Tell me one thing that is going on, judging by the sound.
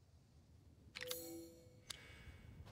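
A bright chime rings out and fades quickly.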